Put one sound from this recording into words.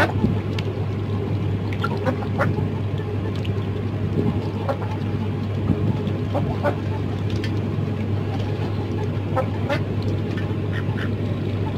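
A duck dabbles its bill in a bowl of water.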